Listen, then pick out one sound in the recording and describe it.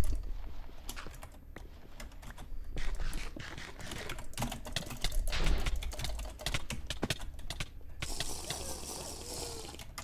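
Blocks crunch and crack as they are dug away.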